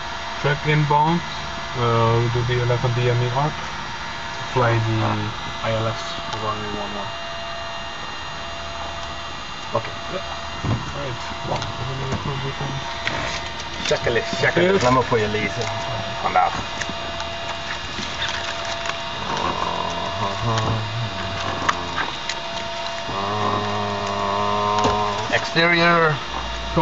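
A man speaks in short bursts over a crackly radio.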